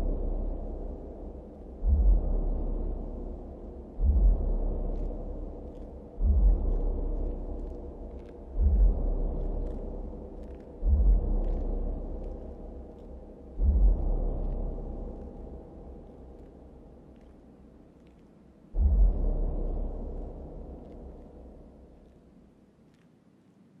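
Loud club dance music thumps with deep bass hits.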